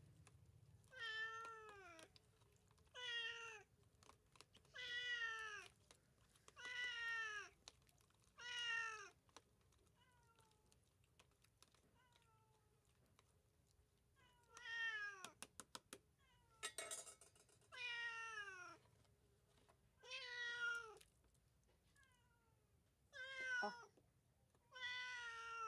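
A domestic cat meows repeatedly, close by.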